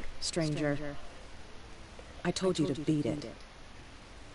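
A woman speaks calmly through a game's sound.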